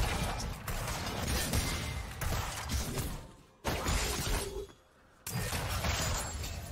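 Magic spells blast and weapons clash in a game fight.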